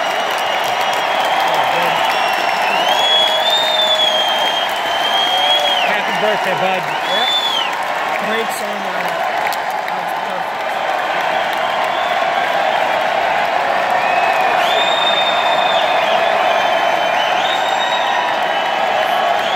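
A large crowd roars and cheers in a huge echoing arena.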